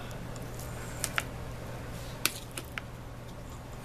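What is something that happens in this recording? A fork clinks and scrapes on a plate.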